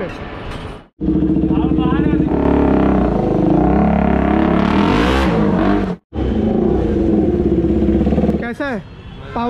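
A motorcycle engine revs loudly and roars off.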